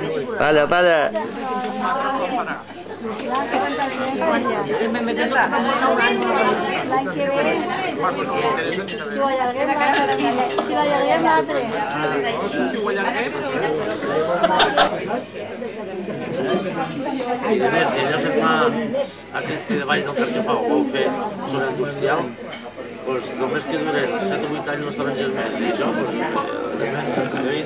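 Several people talk at once in a busy, lively crowd.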